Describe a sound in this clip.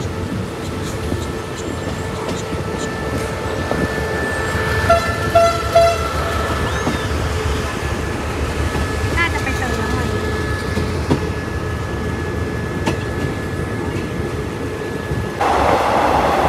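A locomotive engine hums and drones nearby.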